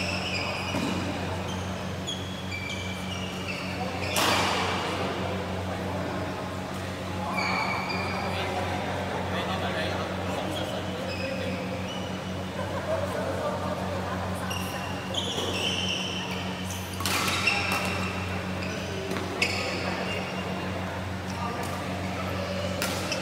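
Shoes squeak sharply on a hard court floor in a large echoing hall.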